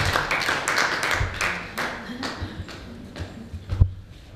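An audience claps in a room.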